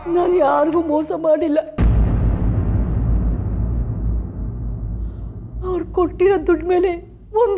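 An elderly woman speaks tearfully and pleadingly, close by.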